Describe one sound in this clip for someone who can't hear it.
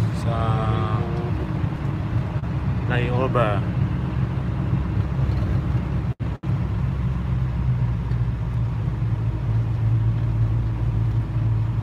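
An engine drones steadily, heard from inside a moving vehicle.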